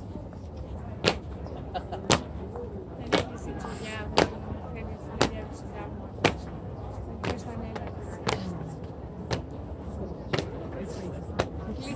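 Heavy boots stamp in a slow, even marching rhythm on stone.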